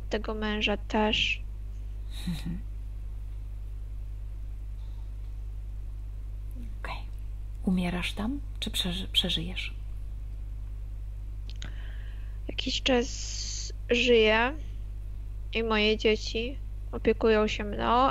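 A woman speaks calmly over an online call, heard through a headset microphone.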